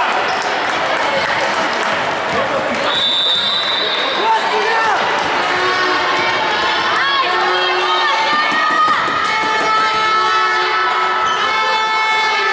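A crowd of people chatter and call out in a large echoing hall.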